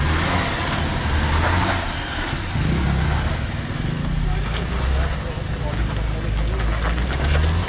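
Tyres crunch over sand and grit.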